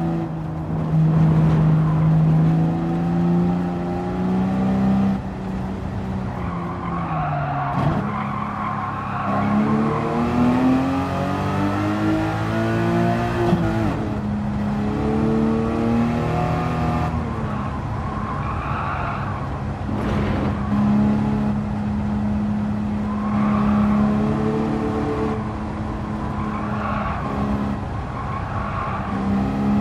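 A racing car engine roars loudly, revving up and down through the gears.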